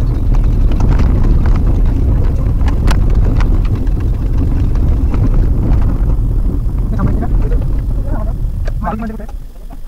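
A car's body rattles and knocks over bumps.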